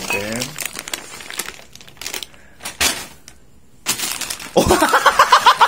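A plastic snack bag crinkles as it is handled.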